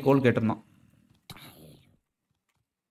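A zombie in a video game groans.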